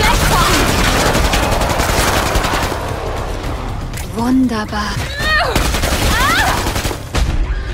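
A monster screeches and roars.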